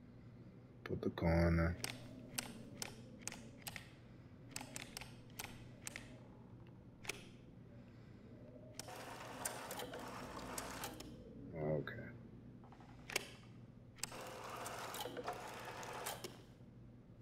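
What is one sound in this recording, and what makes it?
Jukebox buttons click sharply, one after another.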